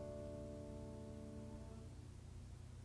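A piano chord rings out and fades away.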